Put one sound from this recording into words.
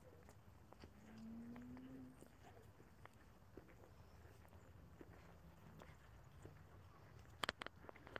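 Footsteps crunch softly on a rough path.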